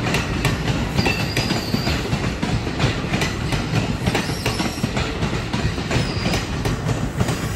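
Train wheels squeal against the rails.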